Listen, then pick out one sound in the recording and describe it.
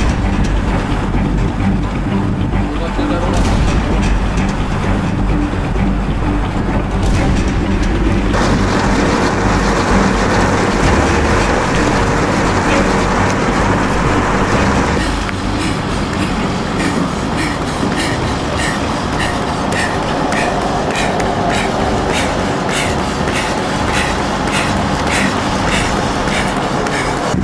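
A runner's footsteps slap steadily on asphalt.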